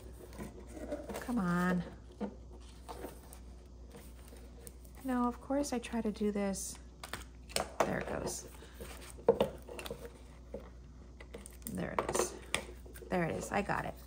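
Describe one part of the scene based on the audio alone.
Paper sticker sheets rustle and crinkle as they are folded and handled.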